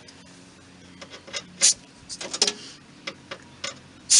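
Metal tools clink and clank against a vehicle's underside.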